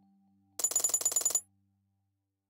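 A chime jingles as a gift box fills up.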